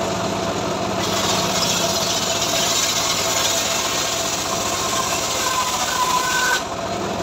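A circular saw screeches loudly as it cuts through a wooden board.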